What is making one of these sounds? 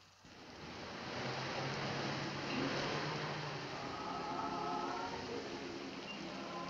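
Rain patters steadily.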